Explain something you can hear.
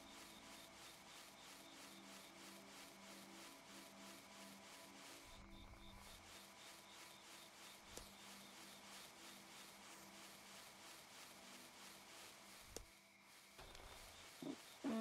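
Paws patter quickly on grass as an animal runs.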